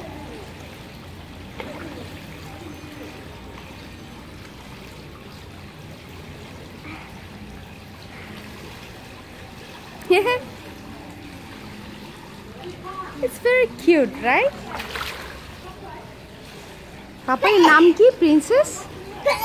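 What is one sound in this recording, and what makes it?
Water splashes softly as a young girl swims.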